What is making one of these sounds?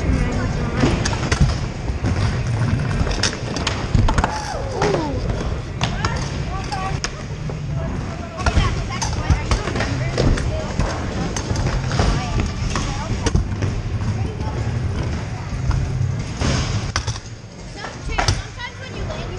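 Scooter wheels clack and knock against ramp edges.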